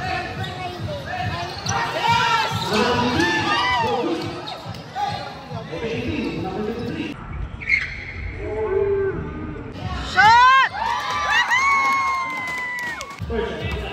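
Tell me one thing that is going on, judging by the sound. A crowd of young spectators shouts and cheers.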